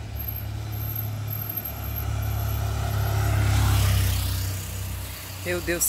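A motorcycle engine approaches, roars past close by and fades away.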